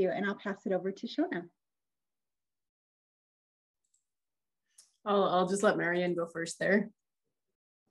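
A woman speaks calmly over an online call, pausing in between.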